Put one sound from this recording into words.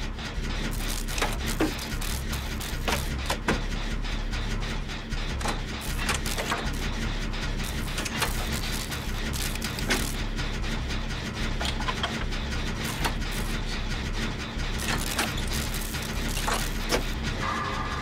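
A machine rattles and clanks with sharp metallic knocks.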